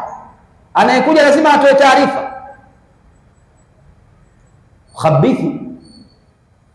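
A man preaches loudly with animation through a headset microphone, in bursts with pauses.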